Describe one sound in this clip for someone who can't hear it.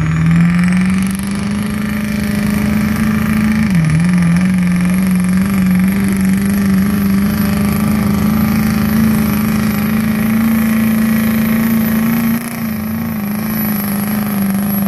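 A weight sled scrapes and grinds across dirt.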